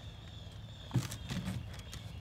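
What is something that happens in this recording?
A hoof knocks against a wooden pole.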